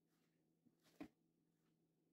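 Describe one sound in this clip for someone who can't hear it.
Dried burdock strips rustle in a glass bowl.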